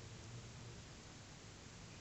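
Beer pours from a bottle into a glass.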